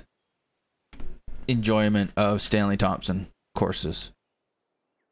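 A man speaks calmly into a close microphone.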